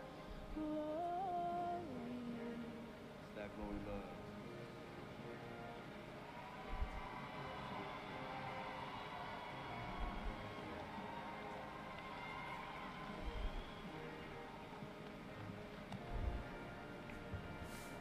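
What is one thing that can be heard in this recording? A young woman sings into a microphone, heard through loudspeakers in a large hall.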